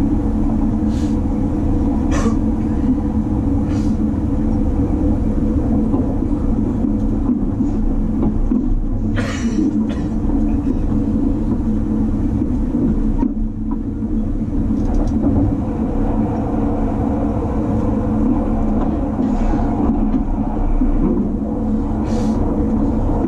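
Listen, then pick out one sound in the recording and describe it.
Wheels clack over rail joints now and then.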